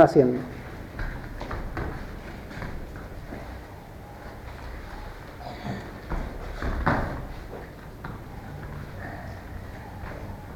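Bare feet thud and kick on a padded floor.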